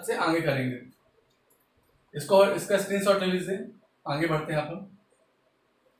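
A man speaks calmly and clearly nearby, as if teaching.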